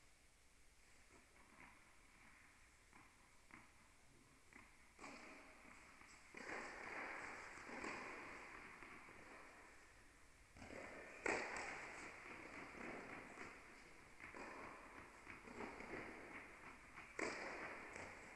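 A tennis ball is struck with a racket and bounces, echoing in a large hall.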